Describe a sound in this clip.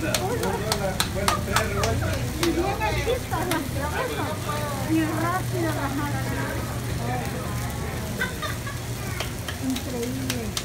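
Hands pat and slap soft dough in quick claps.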